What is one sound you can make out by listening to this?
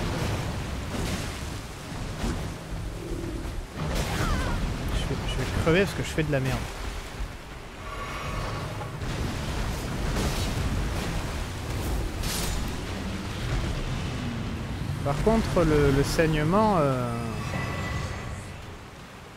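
Icy blasts whoosh and crackle.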